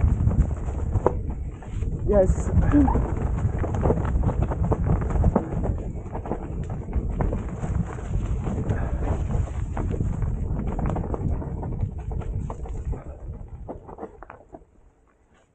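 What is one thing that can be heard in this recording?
Bike tyres rumble and crunch over a rough dirt trail.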